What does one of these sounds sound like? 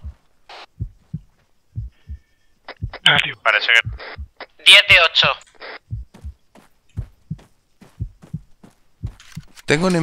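Footsteps crunch on stony ground.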